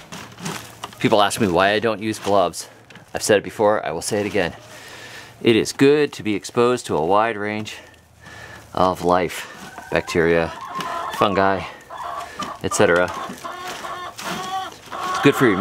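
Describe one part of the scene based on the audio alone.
Hands rustle and crumble dry compost.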